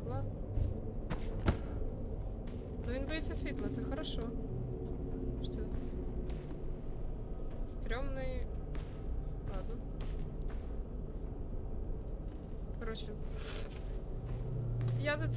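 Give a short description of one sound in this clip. A young woman speaks close to a microphone, with bursts of animation.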